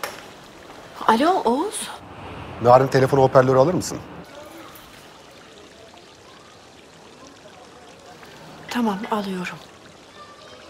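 A young woman speaks anxiously into a phone.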